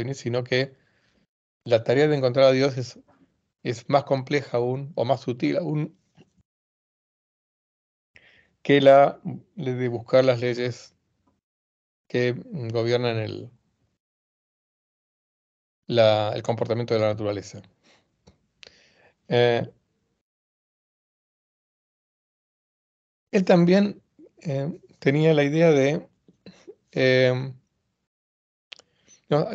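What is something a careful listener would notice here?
An elderly man speaks calmly through an online call microphone, with pauses.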